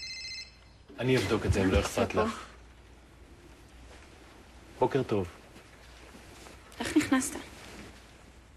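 A young woman asks questions sleepily.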